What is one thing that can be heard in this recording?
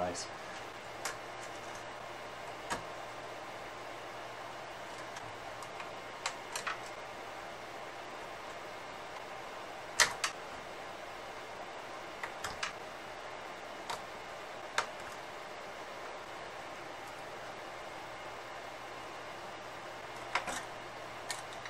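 Hands click and tap on plastic and metal parts of an electronic device.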